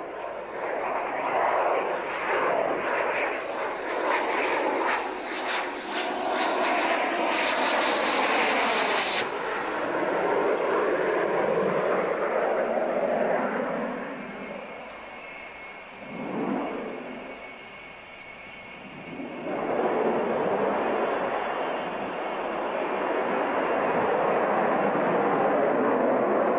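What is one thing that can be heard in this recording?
A twin-engine fighter jet roars at full power as it climbs steeply overhead.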